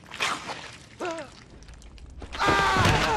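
A man cries out in fright close by.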